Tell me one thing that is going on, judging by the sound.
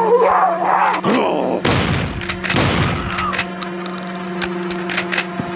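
A gun fires repeated shots.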